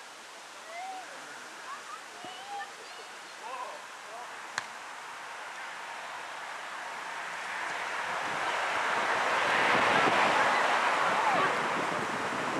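Young men shout across a football pitch, far off.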